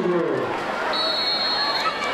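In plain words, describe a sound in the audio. A referee's whistle blows shrill and steady.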